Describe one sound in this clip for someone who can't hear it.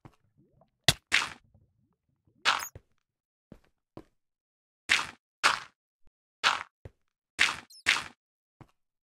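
Dirt blocks thud as they are placed one after another.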